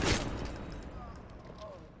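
A gunshot rings out close by and echoes away.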